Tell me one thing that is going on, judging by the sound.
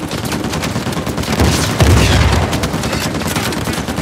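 A rocket fires and explodes with a deep boom.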